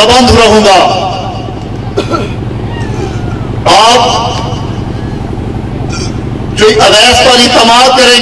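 A man speaks loudly and with passion into a microphone, heard through loudspeakers with echo.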